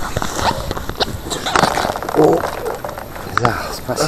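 Water splashes as a fish is pulled up through a hole in the ice.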